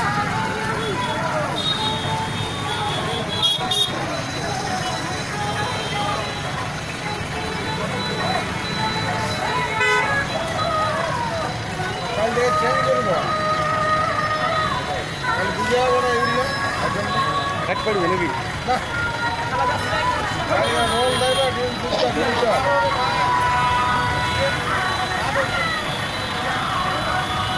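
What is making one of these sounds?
Vehicle engines hum and idle nearby.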